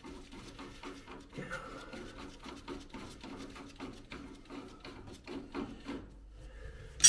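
A gloved hand rubs against a rusty metal pipe flange.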